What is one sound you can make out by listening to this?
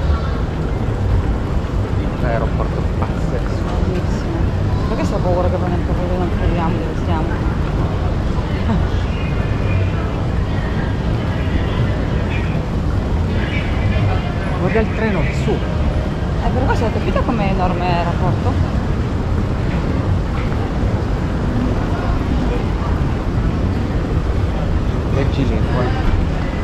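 A moving walkway hums and rumbles steadily.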